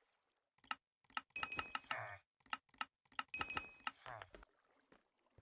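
Short electronic chimes and clicks ring out quickly one after another.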